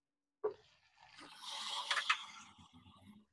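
Chopped tomatoes tumble into a pan.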